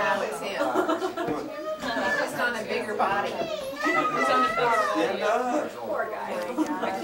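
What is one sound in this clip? Several women talk and laugh together nearby.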